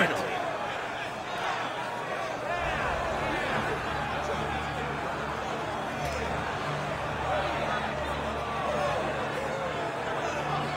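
A large crowd of men shouts and clamours nearby.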